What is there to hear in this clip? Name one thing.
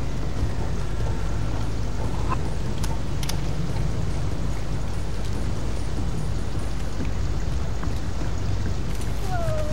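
Rain falls steadily and hard outdoors.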